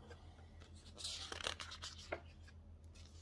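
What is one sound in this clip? Magazine pages rustle and flip as they are turned.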